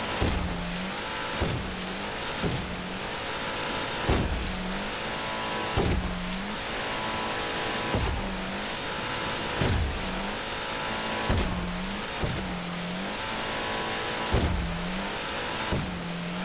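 A boat's hull slams down on waves again and again with heavy thuds.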